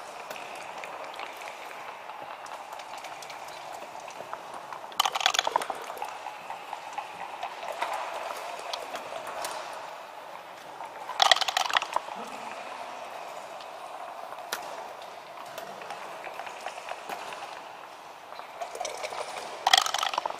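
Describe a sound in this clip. Game pieces click against a wooden board as they are moved.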